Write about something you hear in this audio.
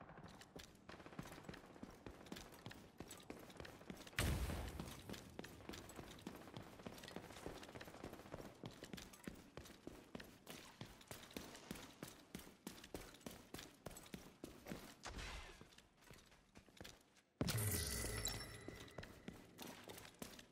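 Footsteps crunch quickly over gravel and debris.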